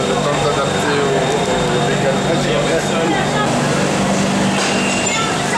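A train hums steadily close by.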